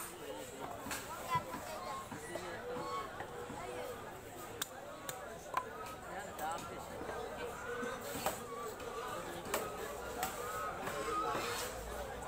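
A knife scrapes and chops at a fish.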